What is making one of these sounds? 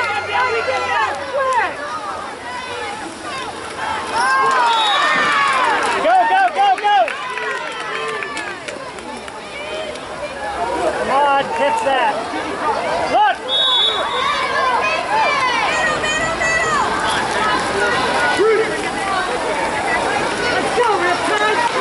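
Several men and women shout and cheer from close by and across the pool.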